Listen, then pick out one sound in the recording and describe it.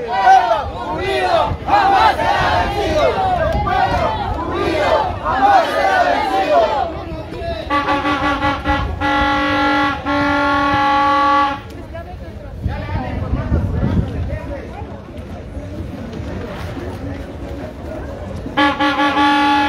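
A crowd of men and women talk and chatter close by outdoors.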